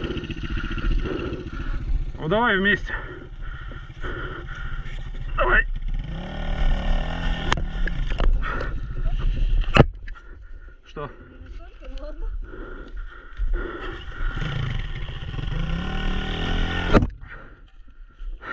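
A dirt bike engine idles and revs unevenly.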